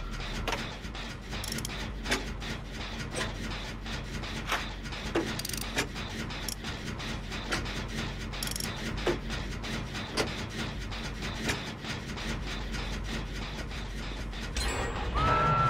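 Metal parts of a machine click and clatter rapidly as it is being repaired.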